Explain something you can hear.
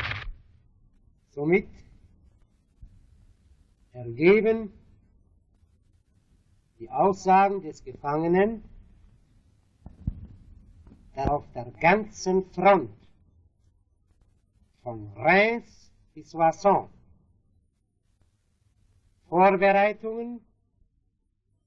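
A man speaks calmly in short phrases with long pauses.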